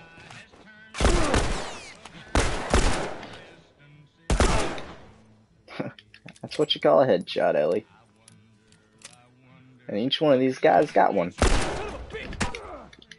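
Loud gunshots fire and echo.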